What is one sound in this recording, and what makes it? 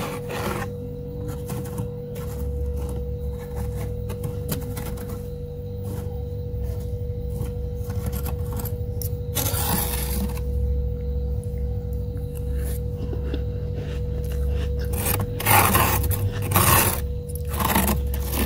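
Loose frost crunches under a hand.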